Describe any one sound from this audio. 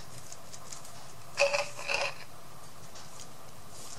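A plastic paint bottle is set down on a table.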